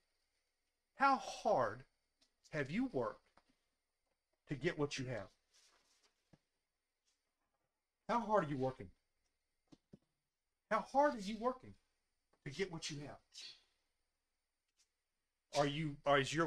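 An elderly man speaks calmly through a microphone, in short phrases with pauses.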